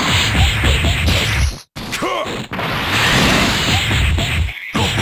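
Rapid punches thud in a fast flurry.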